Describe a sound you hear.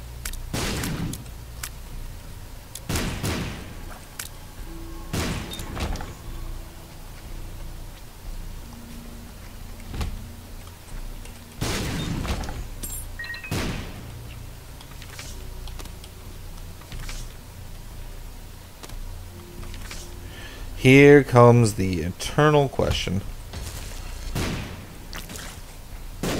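Short thumps and bursts of a video game's sound effects come again and again.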